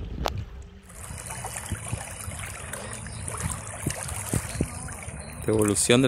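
Water splashes as a fish is released by hand.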